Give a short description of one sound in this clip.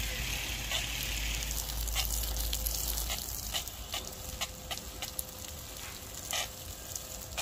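Heavy raindrops tap on leaves close by.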